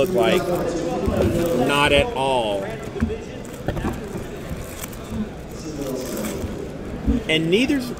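Cards shuffle and slide against each other.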